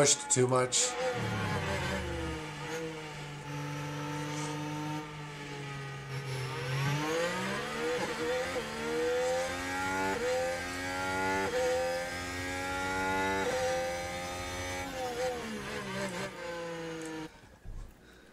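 A racing car engine whines and revs as it changes gear.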